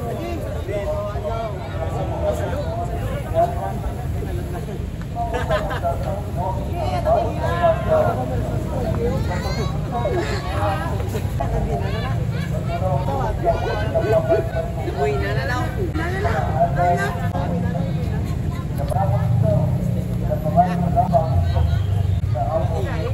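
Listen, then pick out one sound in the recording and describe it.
A group of young men talks and shouts excitedly outdoors.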